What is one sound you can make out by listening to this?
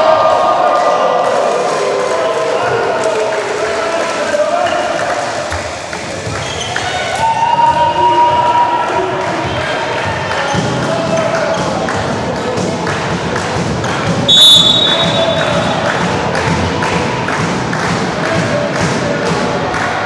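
Young men shout and cheer in a large echoing hall.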